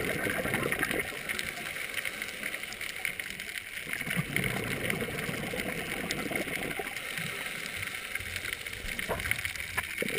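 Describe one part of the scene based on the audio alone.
Air bubbles rumble and gurgle as a diver breathes out underwater.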